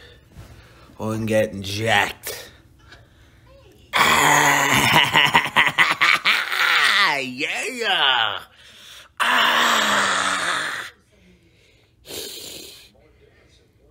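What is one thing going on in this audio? A man speaks close up with animation.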